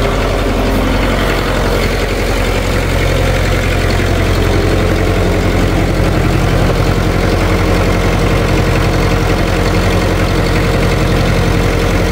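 A tractor engine idles nearby with a steady low rumble.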